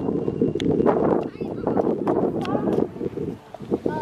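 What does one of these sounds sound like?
A child runs with light footsteps on a pavement.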